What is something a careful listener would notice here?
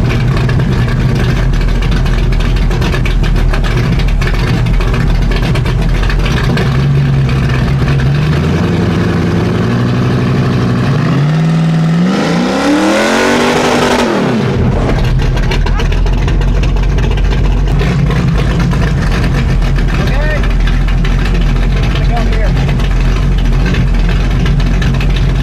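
A loud car engine rumbles at idle outdoors.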